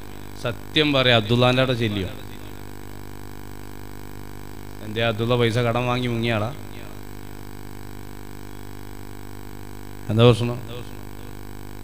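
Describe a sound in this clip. A man speaks through a microphone and loudspeakers in bursts, with pauses between phrases.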